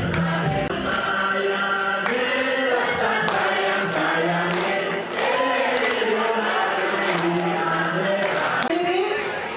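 A crowd of men and women claps in rhythm.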